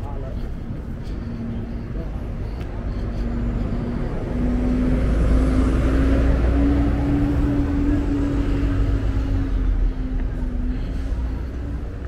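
A bus engine drones loudly as it passes close by.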